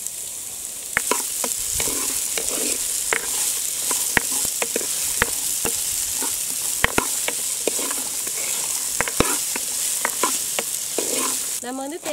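A wooden spoon scrapes and knocks against a pan while stirring.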